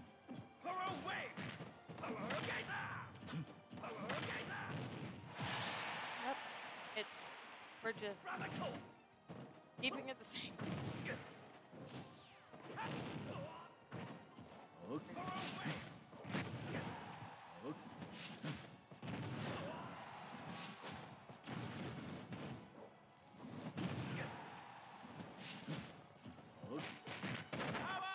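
Video game fighters land punches and blasts with sharp thuds and bursts.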